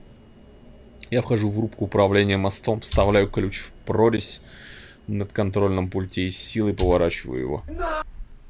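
A man reads aloud with animation close to a microphone.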